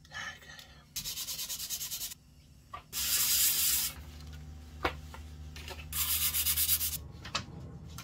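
Something is rubbed back and forth on sandpaper in short bursts.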